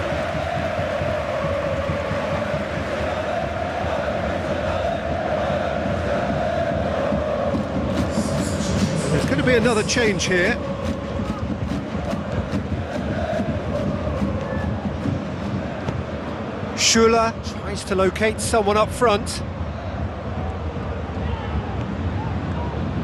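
A large stadium crowd chants and roars steadily.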